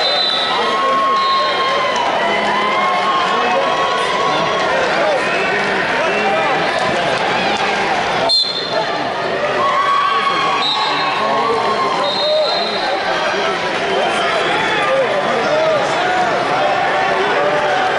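A large crowd chatters and calls out, echoing through a big hall.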